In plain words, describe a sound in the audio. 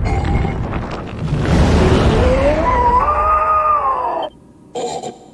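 A creature lets out a long, wavering scream.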